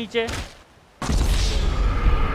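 A heavy body thuds onto rocky ground.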